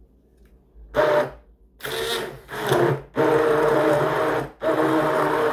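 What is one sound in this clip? A hand blender whirs loudly, blending food.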